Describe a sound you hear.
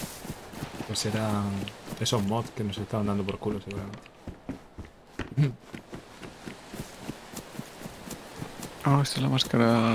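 A man talks with animation into a microphone, close up.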